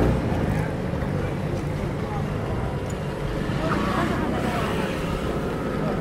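A scooter passes close by.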